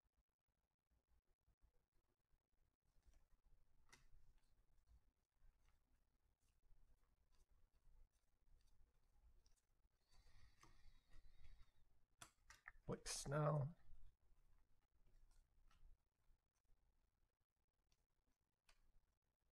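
Trading cards rustle and slide softly as they are flipped through by hand.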